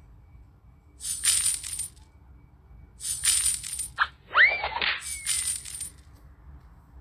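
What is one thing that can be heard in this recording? Game coins clink and jingle in short bursts.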